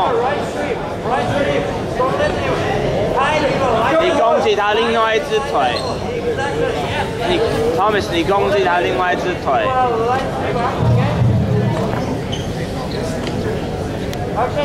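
A crowd of men and women chatter and shout in a large echoing hall.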